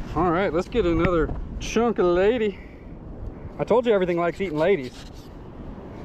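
A knife slices through a small fish on sand.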